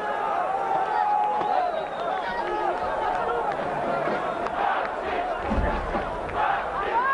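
A large crowd in a stadium cheers and chants loudly.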